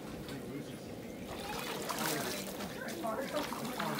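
Water splashes underfoot as a small child wades.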